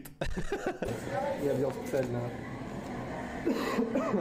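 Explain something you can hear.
Several men laugh nearby.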